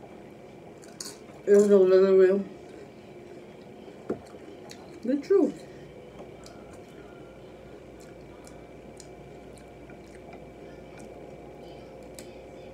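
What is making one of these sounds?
Tortilla chips crunch as a woman chews close to a microphone.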